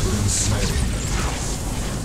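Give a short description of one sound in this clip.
Weapons clash and magic crackles in a fight.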